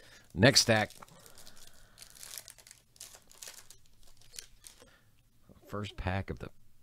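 A foil wrapper crinkles and tears as it is pulled open.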